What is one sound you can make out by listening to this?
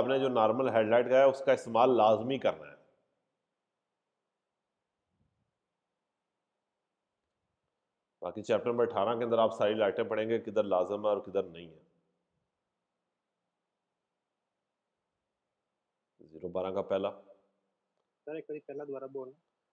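A man speaks calmly into a microphone, heard as over an online call, with long pauses.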